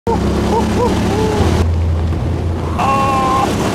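A young man talks excitedly close by, raising his voice.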